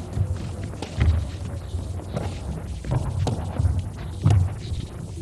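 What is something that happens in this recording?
Sneakers squeak and thump on a hard floor.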